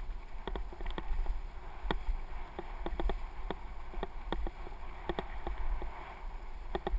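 Wind buffets a microphone on a moving bike.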